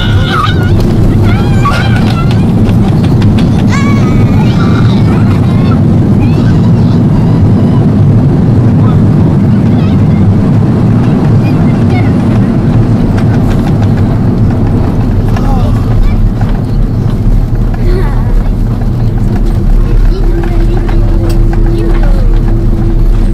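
A jet airliner roars loudly as it lands, heard from inside the cabin.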